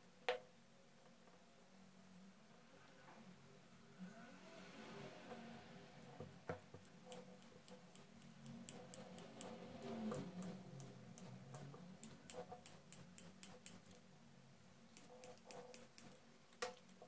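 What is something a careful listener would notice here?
Metal parts click and clatter as hands handle a small mechanism.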